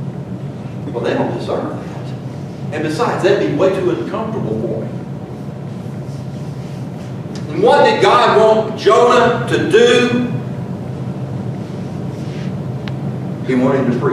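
A middle-aged man speaks with animation into a microphone, in a room with some echo, with pauses between phrases.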